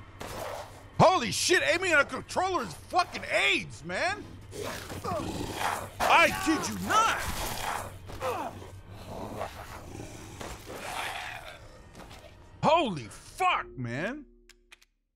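A monster growls and snarls loudly.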